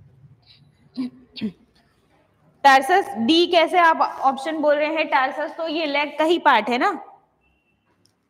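A young woman speaks clearly into a close microphone, explaining.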